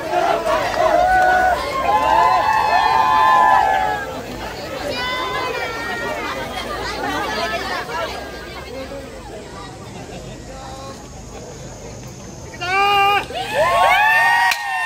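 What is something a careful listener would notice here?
A crowd of men and women chant loudly together outdoors.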